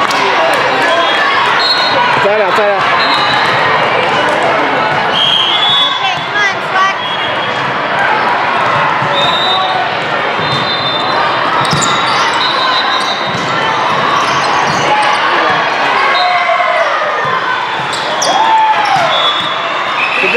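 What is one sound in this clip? A crowd of young women and spectators chatters and shouts in a large echoing hall.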